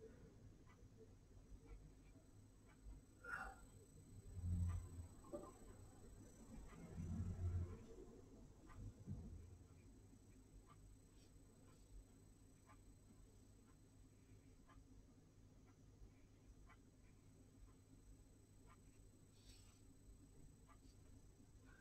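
A brush swishes softly across paper.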